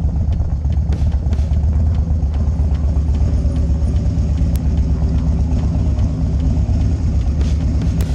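A motorcycle engine idles with a low, steady throb.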